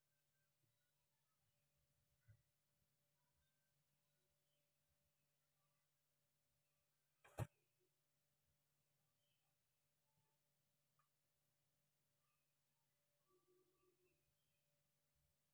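Hands rub and press softly on bare skin.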